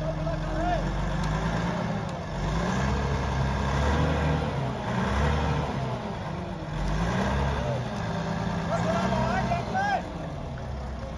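Men talk to each other outdoors.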